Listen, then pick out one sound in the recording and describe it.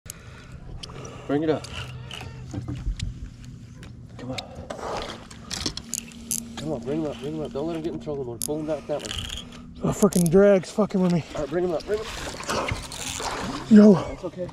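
A fishing reel clicks as its handle is turned.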